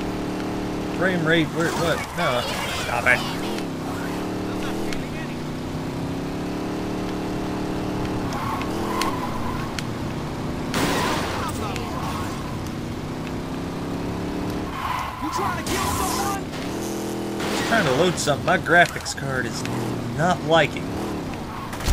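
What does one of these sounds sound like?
Tyres screech while a car slides around corners.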